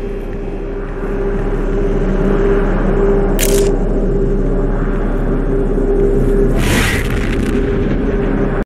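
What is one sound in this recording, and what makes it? An energy portal hums and crackles steadily.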